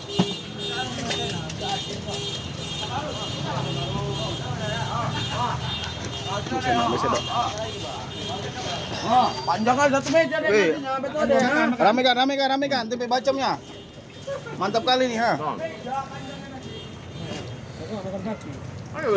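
A crowd of men talk and call out loudly close by.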